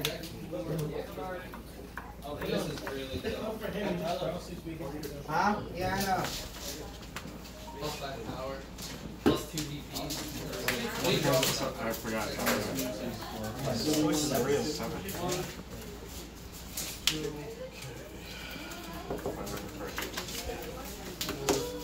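Playing cards tap and slide softly on a table mat.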